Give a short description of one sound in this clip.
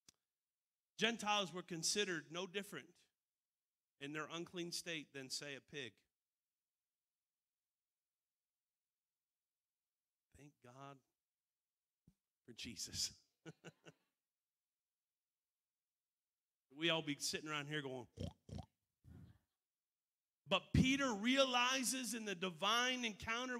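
A middle-aged man speaks into a microphone with animation, in bursts separated by pauses.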